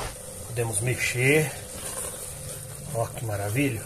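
A spatula stirs and scrapes thick sauce in a metal pot.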